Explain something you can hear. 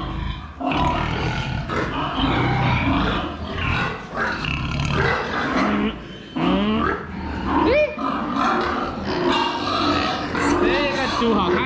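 Pigs grunt and squeal close by.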